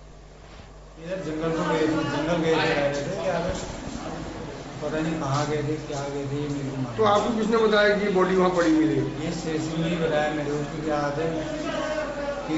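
A middle-aged man speaks close by with feeling.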